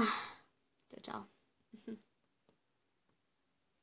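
A small plastic doll is set down onto a toy chair with a light knock.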